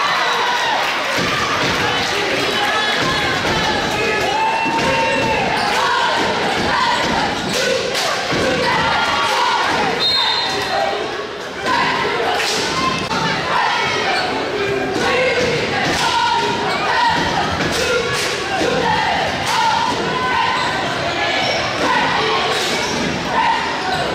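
A crowd of young people shouts and cheers in a large echoing gym.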